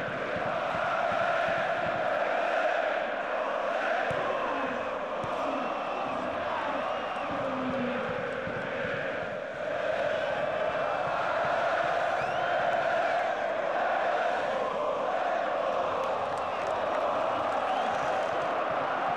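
A large stadium crowd chants and roars steadily.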